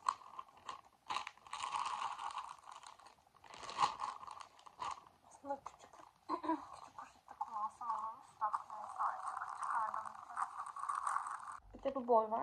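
A plastic bag crinkles and rustles as it is shaken close by.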